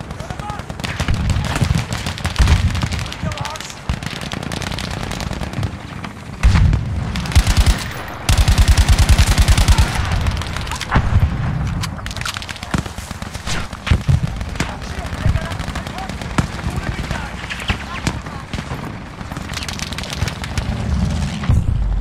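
Gunfire cracks and thumps in rapid bursts.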